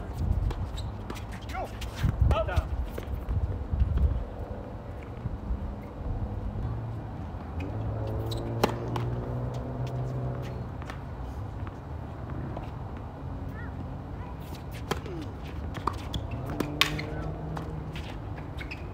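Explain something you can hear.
Tennis balls pop off rackets in sharp hits.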